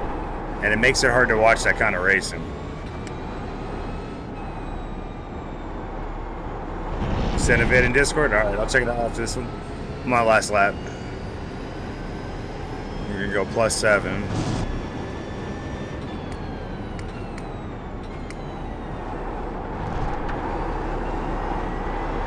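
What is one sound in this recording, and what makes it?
A racing car engine drones and revs up and down through gear changes.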